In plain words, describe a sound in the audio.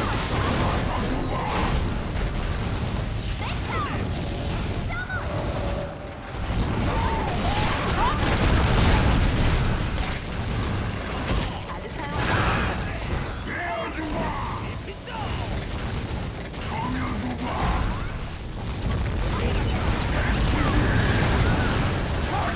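Spells and blasts boom and crackle over and over in a fight.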